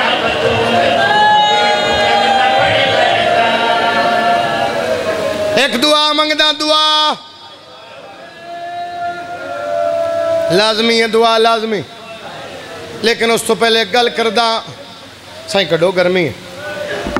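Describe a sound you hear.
A young man recites loudly and melodiously through a microphone and loudspeakers, in a large echoing hall.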